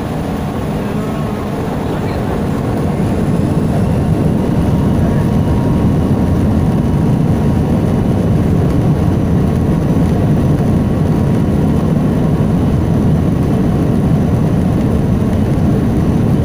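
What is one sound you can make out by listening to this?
Jet engines roar steadily from inside an aircraft cabin, growing louder.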